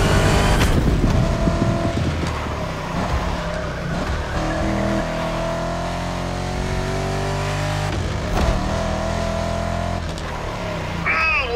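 A racing car engine roars loudly, revving up and down through the gears.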